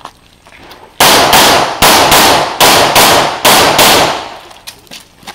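A pistol fires a rapid series of shots outdoors.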